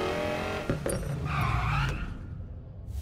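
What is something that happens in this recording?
A car engine hums as a car drives.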